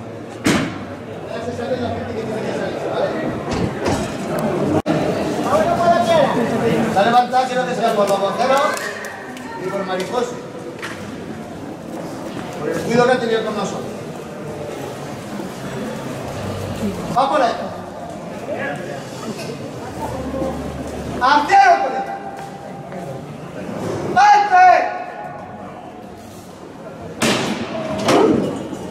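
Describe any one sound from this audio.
A crowd of people murmurs and talks nearby.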